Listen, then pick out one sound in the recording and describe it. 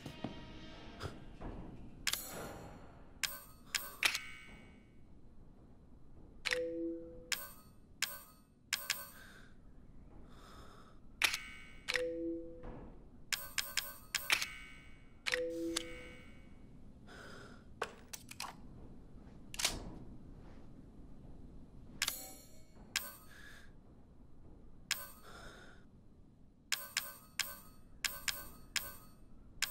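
Short menu clicks and beeps sound again and again.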